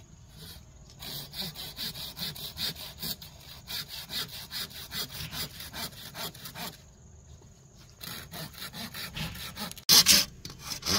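A machete scrapes rapidly and repeatedly along a bamboo pole.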